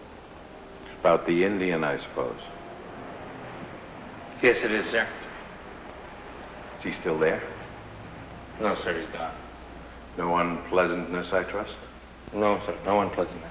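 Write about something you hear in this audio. A young man speaks calmly nearby in an echoing room.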